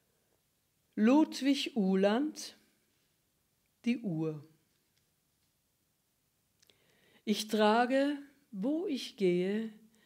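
An elderly woman speaks calmly into a close microphone, with pauses.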